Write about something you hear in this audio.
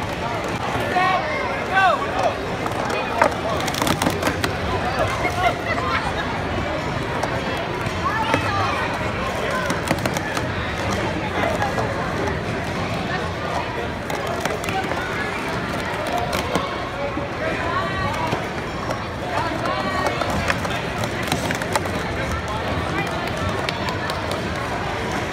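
A crowd of children and adults chatters and cheers loudly in a large echoing hall.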